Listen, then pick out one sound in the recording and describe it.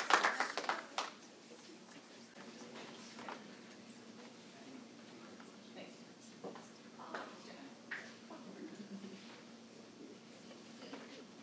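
Men and women talk quietly at a distance in a room.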